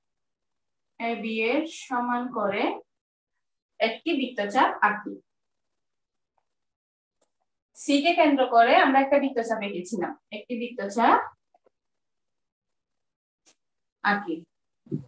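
A woman speaks calmly, explaining in short phrases with pauses.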